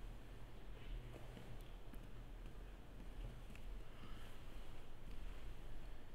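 Footsteps approach across a hard floor.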